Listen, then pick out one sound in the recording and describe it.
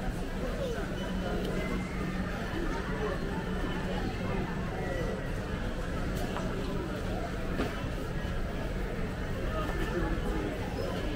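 A crowd of men and women chatters all around in a large echoing hall.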